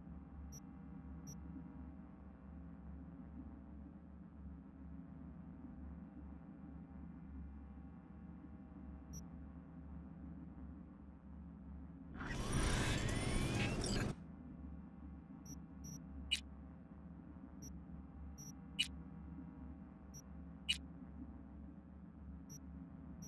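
Soft electronic menu clicks tick now and then.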